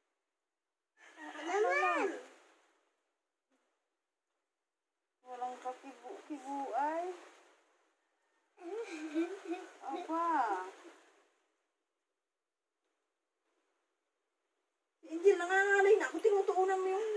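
A woman coos to a baby in a high, sing-song voice.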